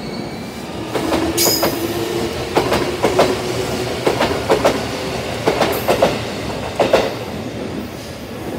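An electric commuter train rolls past on a neighbouring track.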